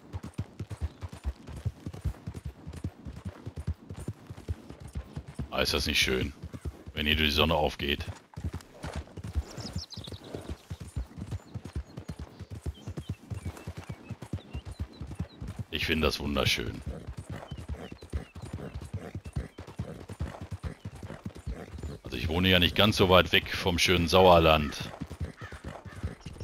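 A horse's hooves thud steadily along a dirt path.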